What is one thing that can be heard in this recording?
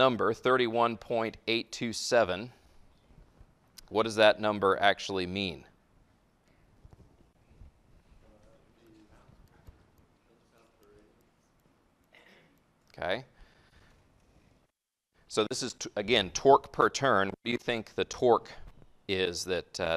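A man lectures calmly into a microphone.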